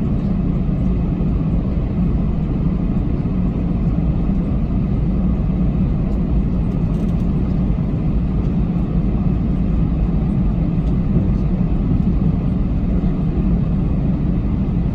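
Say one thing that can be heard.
A jet airliner's engines rumble steadily from inside the cabin as it taxis.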